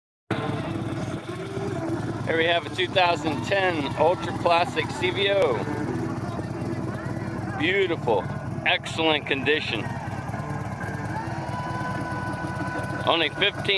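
A motorcycle engine idles with a steady, low, lumpy rumble.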